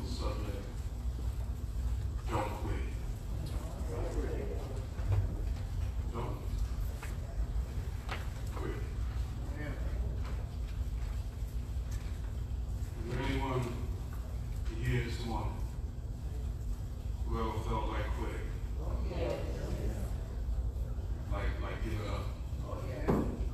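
A man preaches into a microphone in an echoing hall, speaking slowly and earnestly.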